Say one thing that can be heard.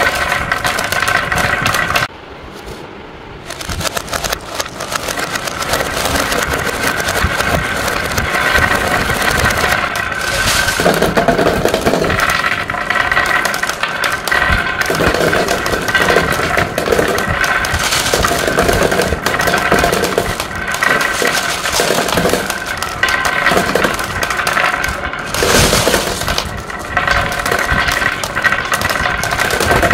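Glass marbles clatter and click together in a wooden bowl.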